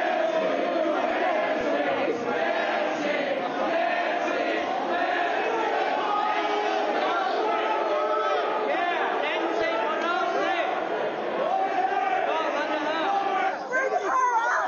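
A large crowd of men and women chants loudly in an echoing hall.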